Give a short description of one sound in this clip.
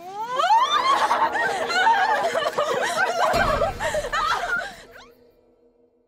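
Several young women shriek as they run off.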